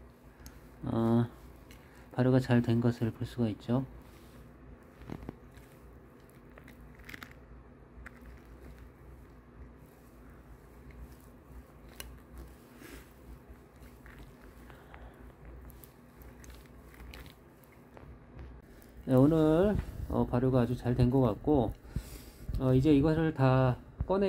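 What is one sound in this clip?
A spatula stirs through sticky beans with soft, wet squelching.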